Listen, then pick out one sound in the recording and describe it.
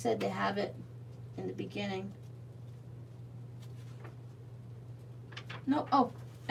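Glossy magazine pages rustle and flap as a hand handles them.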